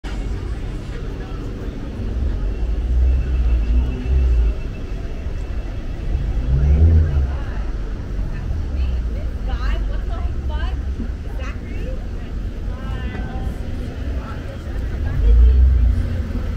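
City traffic rumbles steadily on a street nearby.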